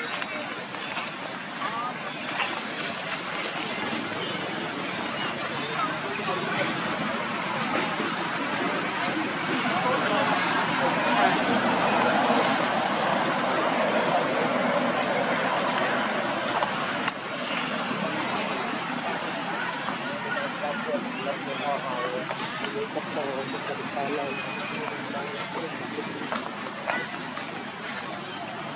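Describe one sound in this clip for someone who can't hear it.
Monkeys walk through dry leaves on the grass, rustling softly.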